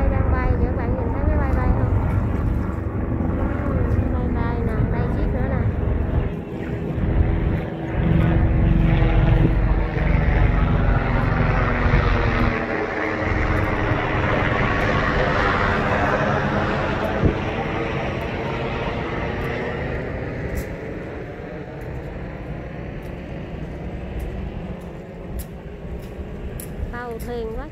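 A helicopter flies overhead, its rotor thumping loudly and then slowly fading.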